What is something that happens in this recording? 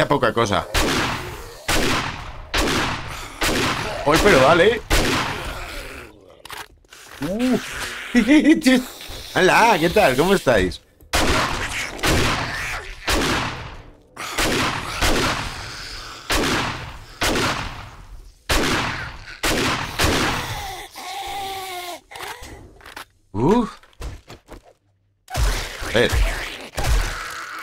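Gunshots fire in quick bursts, ringing through a hard, echoing corridor.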